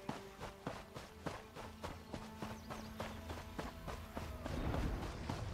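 Footsteps thud at a steady run.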